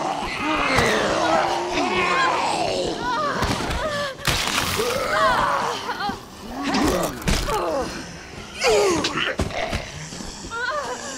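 A zombie snarls and groans close by.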